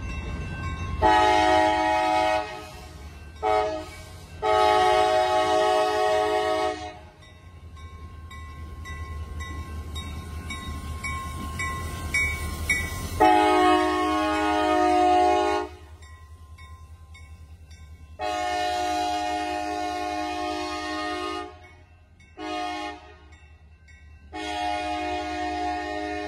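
A train horn blows loud, long blasts again and again.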